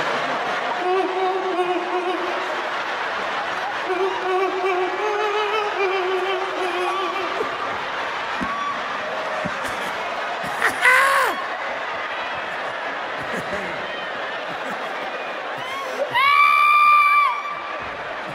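A large crowd cheers and shouts in a big hall.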